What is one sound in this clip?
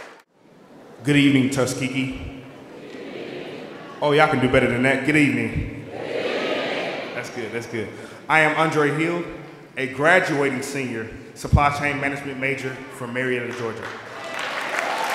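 A man speaks clearly through a microphone in a large echoing hall.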